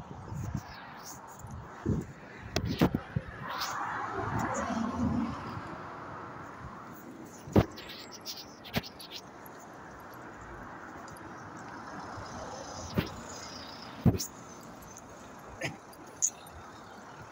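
Footsteps tap on a paved path outdoors.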